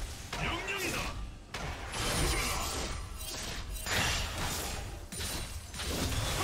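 Weapons clash and strike in quick hits.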